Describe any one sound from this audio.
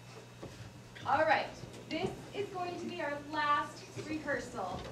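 A woman speaks clearly and with expression to a room.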